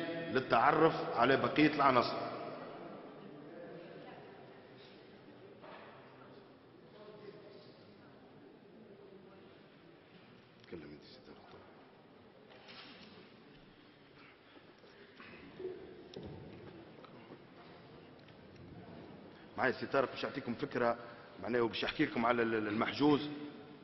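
A man speaks into microphones, pausing often.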